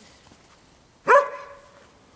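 A dog barks sharply once.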